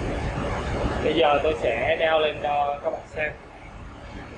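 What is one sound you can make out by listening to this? A young man talks to the listener.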